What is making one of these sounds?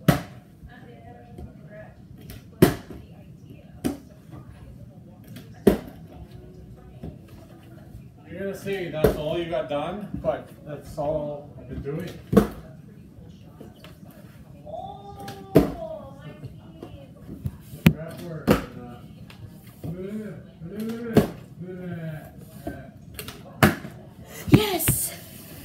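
A plastic water bottle thuds as it lands on wooden stairs.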